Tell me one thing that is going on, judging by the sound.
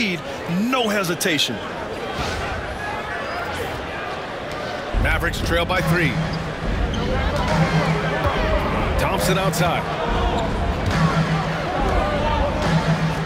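A large arena crowd murmurs and cheers steadily.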